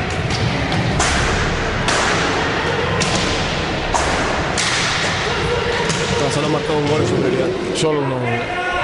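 Sticks strike a ball sharply in a large echoing hall.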